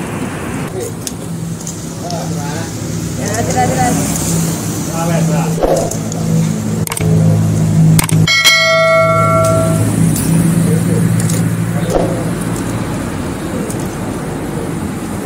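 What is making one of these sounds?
Metal tongs clink against a metal fry basket.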